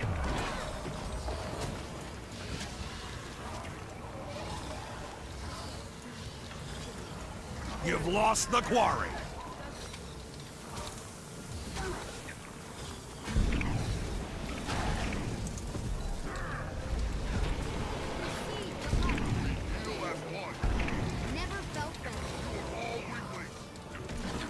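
Fantasy combat sound effects of spells and weapon strikes ring out.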